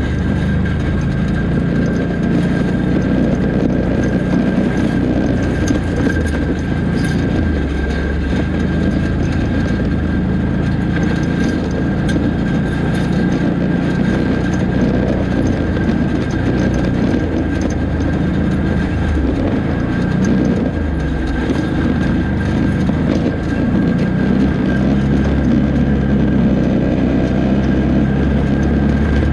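An off-road motorbike engine drones and revs up and down close by.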